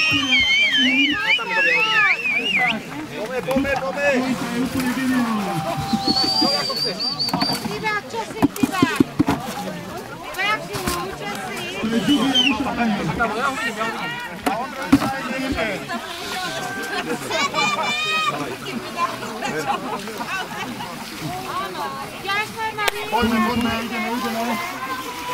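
Several men shout and call out excitedly close by.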